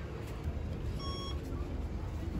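A card reader beeps.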